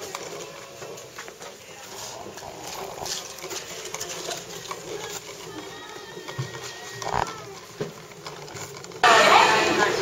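Small plastic wheels roll and rattle across a smooth floor.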